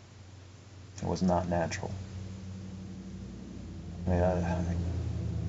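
A young man speaks quietly and slowly, close by.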